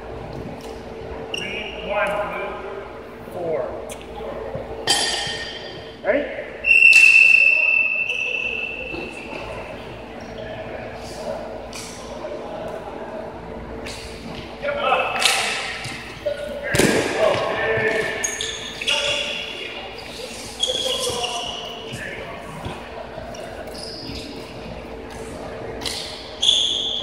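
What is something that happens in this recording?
A ball knocks across a hard floor.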